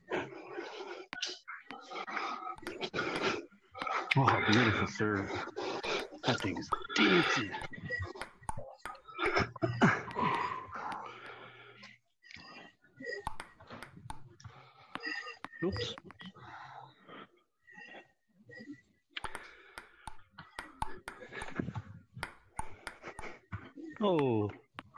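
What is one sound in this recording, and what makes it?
A table tennis ball clicks back and forth against paddles and a table.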